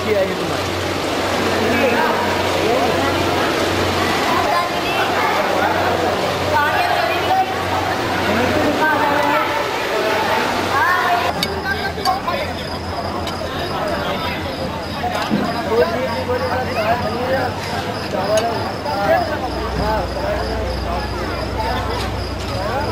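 Many men and women chatter together in a large room.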